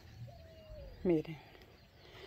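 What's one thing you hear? A middle-aged woman says a word close to the microphone.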